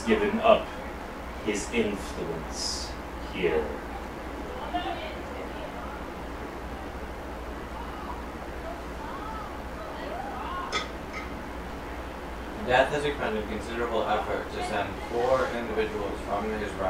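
A group of adult men talk casually in a room.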